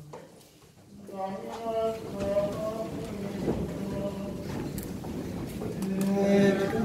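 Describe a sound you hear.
A group of voices sings a response.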